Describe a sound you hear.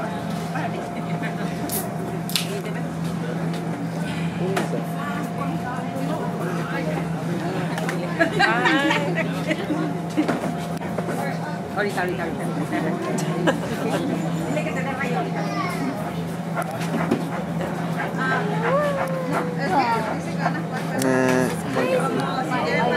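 A crowd of children and adults chatters throughout.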